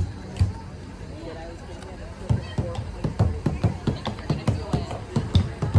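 A crowd of adults and children chat nearby outdoors.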